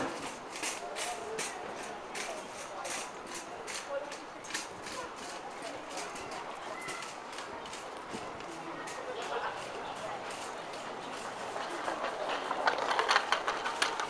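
Footsteps of passers-by tap on a hard walkway.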